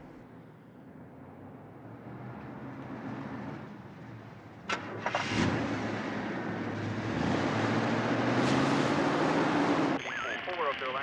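Car tyres hiss past on a wet road.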